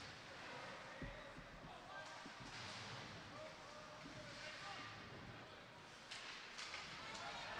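A crowd murmurs in an echoing rink.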